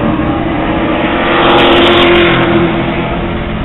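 Race cars roar loudly past up close.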